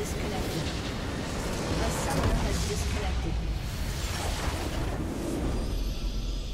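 A large crystal explodes with a loud rumbling blast.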